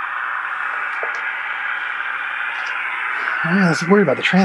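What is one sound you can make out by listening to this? A radio gives off a steady hiss of static.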